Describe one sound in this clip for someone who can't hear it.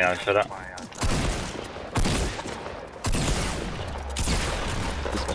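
Video game gunshots fire in bursts.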